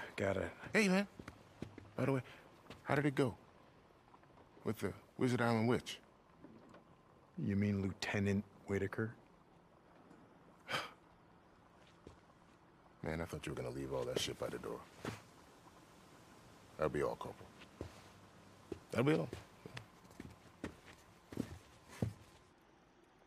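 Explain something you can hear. A man speaks calmly and warmly, close by.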